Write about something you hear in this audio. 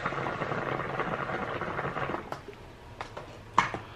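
A young woman draws and blows out a long breath close by.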